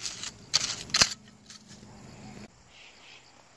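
A trowel scrapes and digs into soil.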